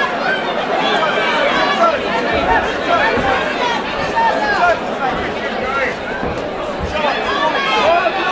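A crowd of men and women chatters and shouts in a large echoing hall.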